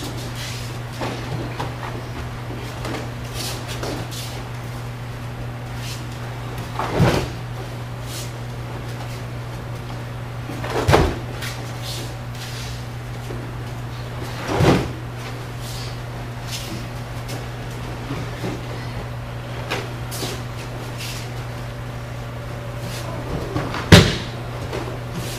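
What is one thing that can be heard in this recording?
Bare feet shuffle and slide on a mat.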